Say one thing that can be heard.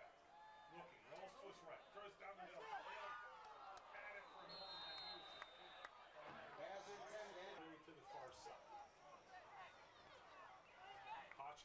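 A crowd of spectators talks and cheers close by, outdoors.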